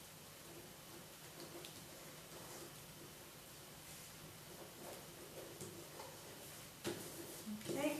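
Paper rustles and creases as it is folded.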